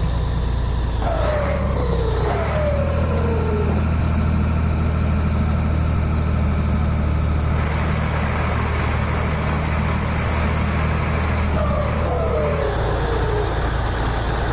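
A truck engine's pitch drops sharply as gears change.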